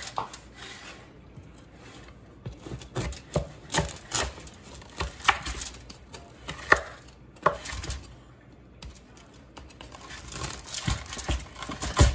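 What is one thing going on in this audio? A knife saws through a thick crust with crackling scrapes on foil.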